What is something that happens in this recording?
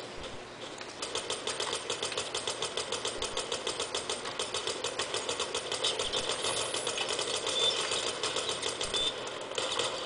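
Rapid gunfire rattles in quick bursts through a small loudspeaker.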